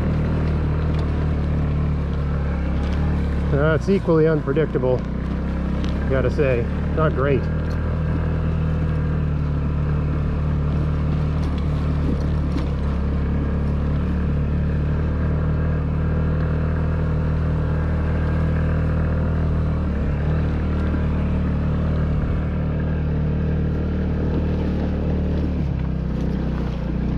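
A small motorbike engine hums steadily at a low, even pitch.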